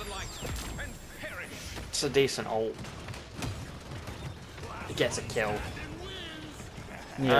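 Blasts and impacts of a game's fight go off now and then.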